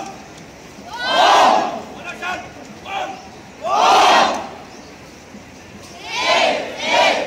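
A large crowd of young people shouts and cheers together in bursts outdoors.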